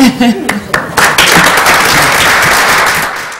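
A small group of people applauds in a large room.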